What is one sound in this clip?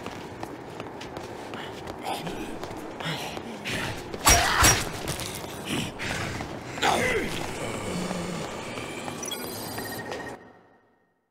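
Zombies groan and moan in a crowd.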